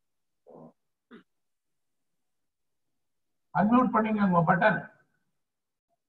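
A middle-aged man speaks with animation over an online call.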